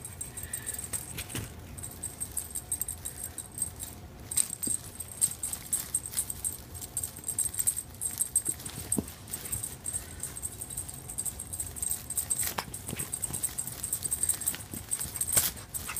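Cats thump softly onto a carpet as they jump and land.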